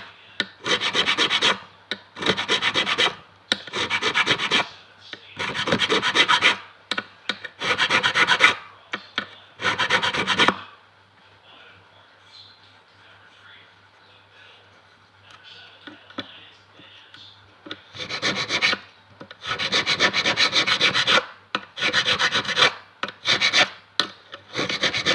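A metal file rasps back and forth in short, rapid bursts.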